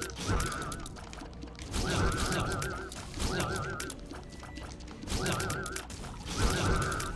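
Video game music plays with a warbling melody.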